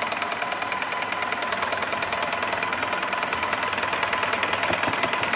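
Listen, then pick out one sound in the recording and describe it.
A paint sprayer pump runs with a rapid, steady chugging.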